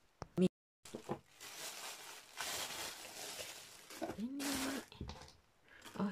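A plastic bag crinkles and rustles as it is pulled off.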